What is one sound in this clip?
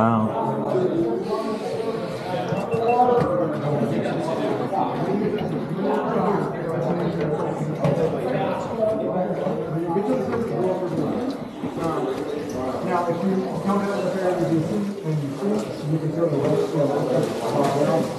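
Voices of several people chatter and call out, echoing around a large cave.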